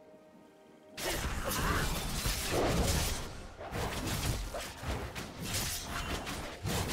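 Magic spells crackle and burst in a fast fight between game characters.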